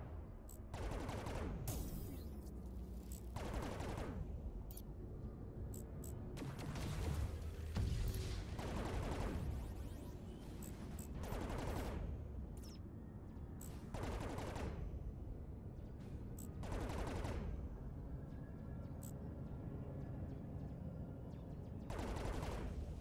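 A spaceship engine rumbles low and steadily.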